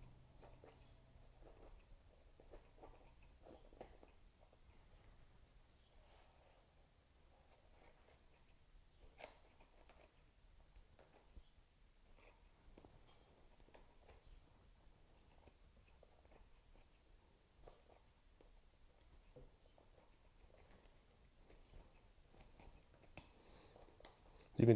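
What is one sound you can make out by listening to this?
Shears snip through small bones with quiet crunching clicks.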